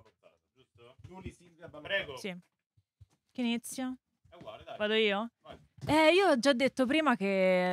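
A group of young people talk and laugh over one another.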